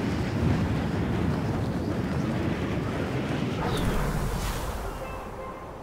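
Wind rushes loudly past during a fast fall, then fades.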